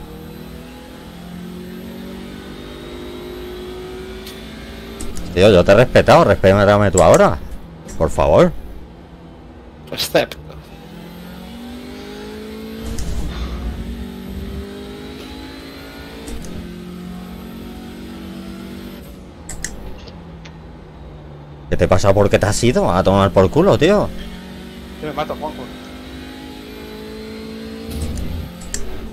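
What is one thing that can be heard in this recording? A racing car engine revs up and down through the gears.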